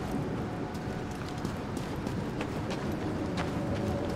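Footsteps run over stony ground.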